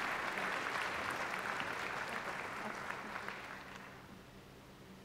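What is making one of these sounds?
A crowd applauds in a large echoing hall, and the applause fades away.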